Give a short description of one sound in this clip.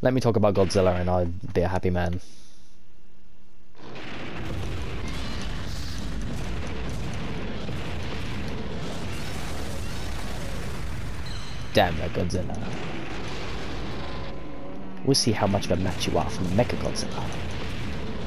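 A giant monster lets out loud, echoing roars.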